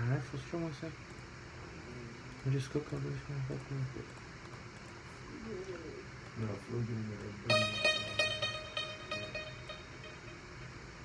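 A man speaks calmly close to a phone microphone.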